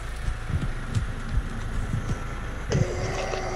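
Footsteps thud softly through grass.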